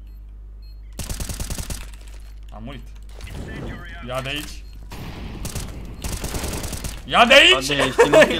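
A rifle fires bursts of rapid shots.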